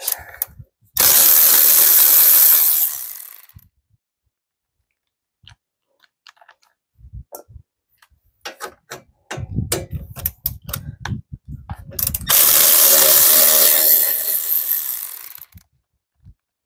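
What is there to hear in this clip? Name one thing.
A cordless power tool whirs loudly in bursts.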